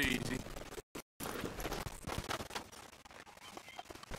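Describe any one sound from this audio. Horse hooves thud on soft ground.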